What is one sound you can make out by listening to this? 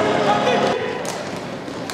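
Spectators murmur and cheer in a large echoing hall.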